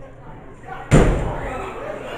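A wrestler slams onto the ring floor with a loud thud.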